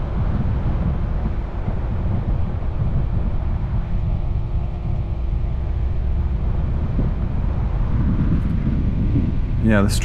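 Tyres crunch and rumble over a dirt track.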